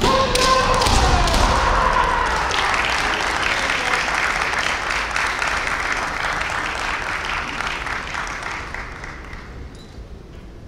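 An audience applauds in a large echoing hall and the applause slowly fades.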